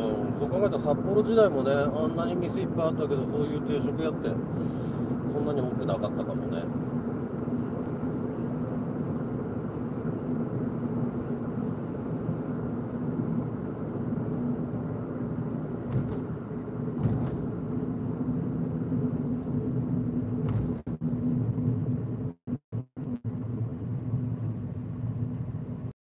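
A car engine hums steadily and tyres roll on the road from inside a moving car.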